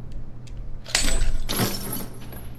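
Bolt cutters snap through a chain with a sharp clank.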